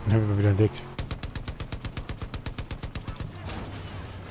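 A mounted machine gun fires a rapid burst.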